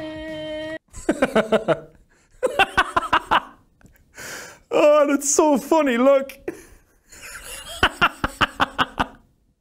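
A young man laughs loudly and heartily close to a microphone.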